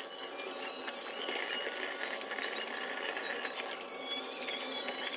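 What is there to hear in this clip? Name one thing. Wet hands squelch while rubbing raw meat under running water.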